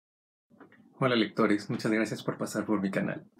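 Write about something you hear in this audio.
A young man speaks with animation close to a microphone.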